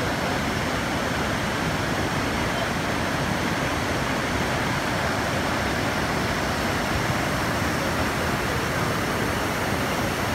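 A swollen river rushes and roars loudly over rocks.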